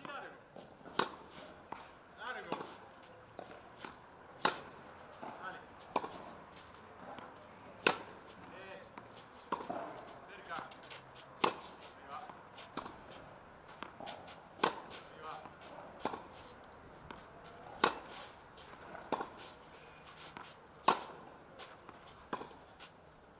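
A tennis racket strikes a ball with sharp pops at a steady rally pace.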